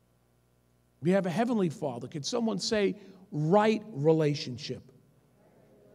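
A man speaks forcefully into a microphone.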